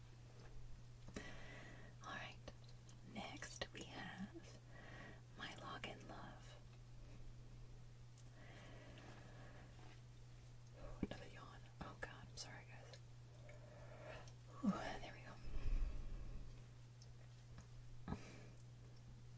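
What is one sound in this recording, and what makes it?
A young woman speaks softly, close to a microphone.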